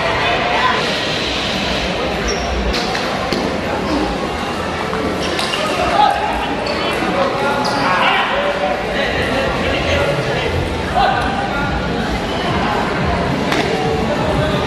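A ping-pong ball clicks back and forth off paddles and a table.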